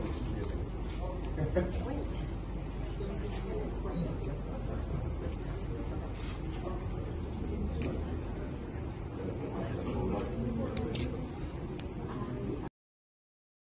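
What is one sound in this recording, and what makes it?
A man talks calmly nearby in a large echoing hall.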